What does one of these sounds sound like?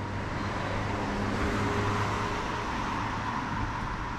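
A car drives along the street nearby.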